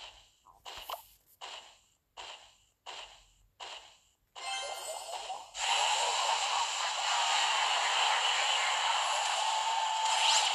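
Small battle sounds of a video game clash and crackle.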